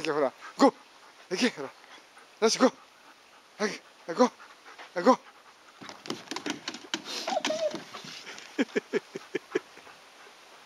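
A small dog barks sharply and repeatedly, close by.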